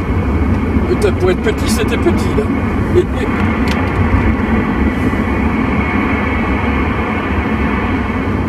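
A CB radio hisses with AM static.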